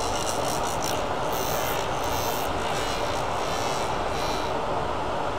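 A lathe hums steadily as it spins.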